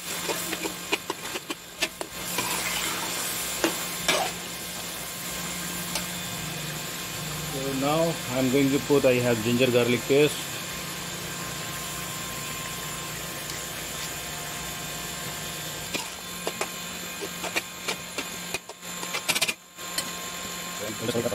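A metal spatula scrapes and clinks against a wok.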